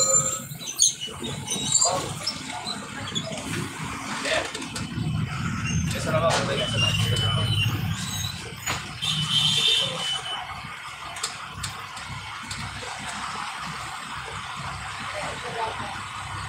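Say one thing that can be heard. Traffic hums along a street outdoors.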